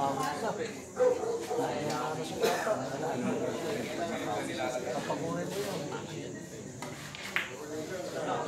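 Pool balls click sharply against each other.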